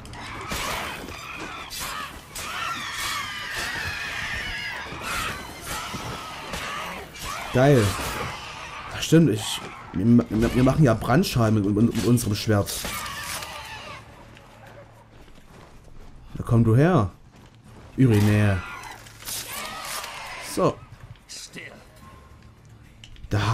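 A sword slashes and clangs repeatedly in a fight.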